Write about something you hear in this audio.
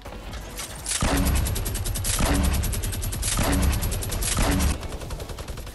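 Guns fire in loud bursts of rapid shots.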